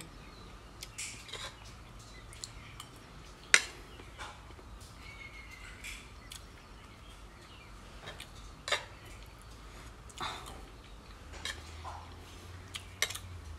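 A young woman chews food with soft smacking sounds, close by.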